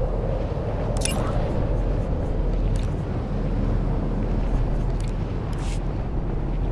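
Interface clicks sound as menus open and close.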